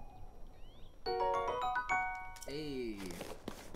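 A short, bright jingle of chimes plays.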